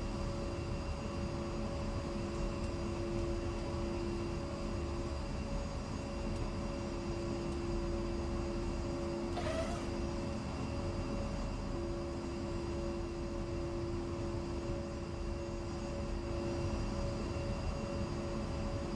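A jet engine idles with a steady whining hum.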